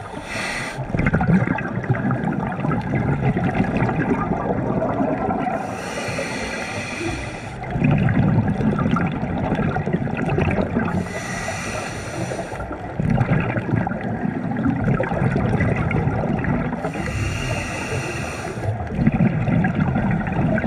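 Exhaled air bubbles gurgle and rumble close by.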